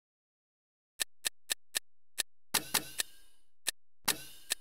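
Menu sounds click and chime in quick succession.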